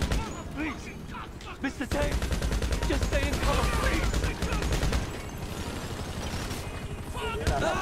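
A helicopter's rotor thumps overhead.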